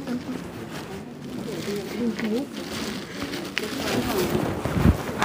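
Young children talk and chatter nearby.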